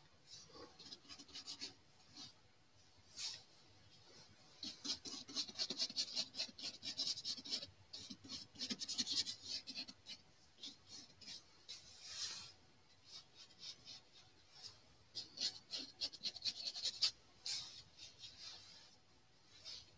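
A paintbrush scratches and dabs softly on paper.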